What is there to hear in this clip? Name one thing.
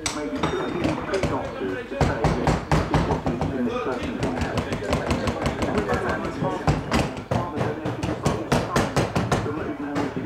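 A hammer taps on a shoe on a last.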